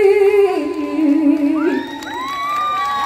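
A young woman sings through a microphone over loudspeakers.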